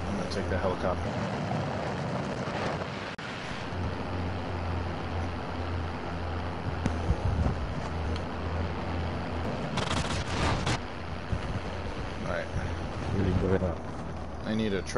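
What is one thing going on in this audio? An engine rumbles steadily nearby.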